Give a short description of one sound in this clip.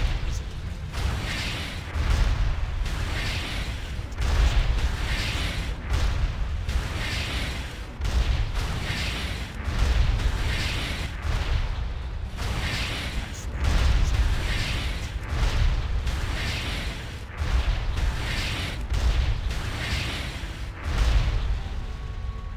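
Spell blasts and fiery explosions boom again and again.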